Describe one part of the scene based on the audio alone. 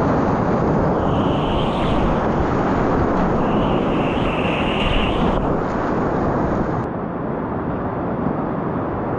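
Whitewater rapids roar loudly close by.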